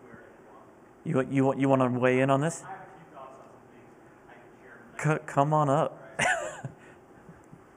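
A man speaks casually in short bursts in an echoing room.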